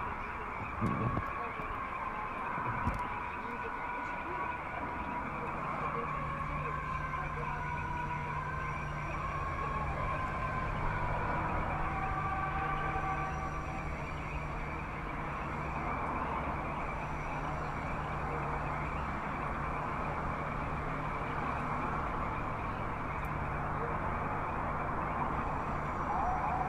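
Eerie film music plays through a loudspeaker.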